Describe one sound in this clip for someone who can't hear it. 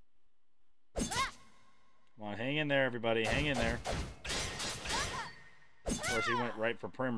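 Sword strikes ring out in sharp bursts.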